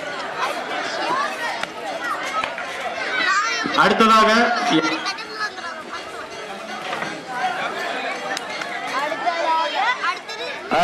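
Several children chatter and shout close by, outdoors.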